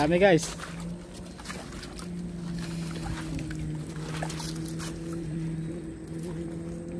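Shallow river water trickles over stones.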